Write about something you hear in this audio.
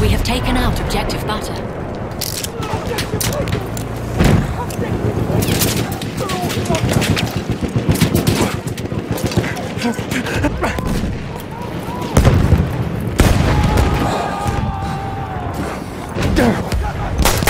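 Gunfire crackles and booms all around.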